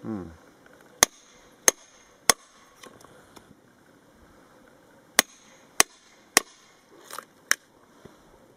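A hammer taps sharply on a chisel cutting into wood.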